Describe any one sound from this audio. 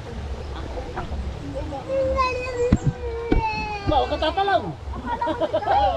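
A man splashes water with his hands.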